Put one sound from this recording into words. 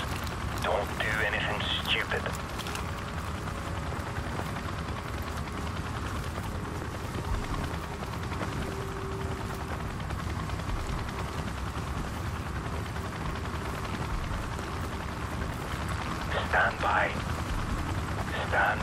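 A large vehicle's engine rumbles low and steady nearby.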